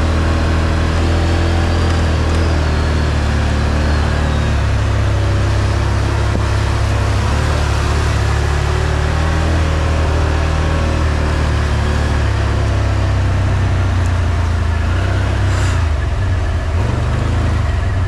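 An off-road vehicle engine rumbles loudly up close.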